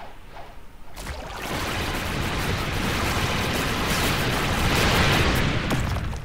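A loud rushing blast roars from a game attack.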